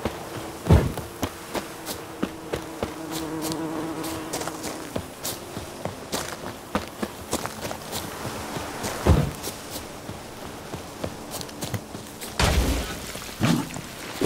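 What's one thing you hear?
Footsteps thud quickly on dirt and grass.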